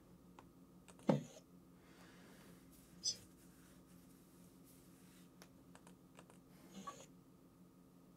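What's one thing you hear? A man speaks briefly and quietly close to a microphone.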